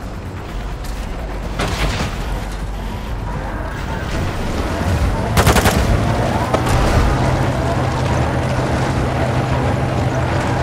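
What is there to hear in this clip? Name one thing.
A tank engine rumbles steadily nearby.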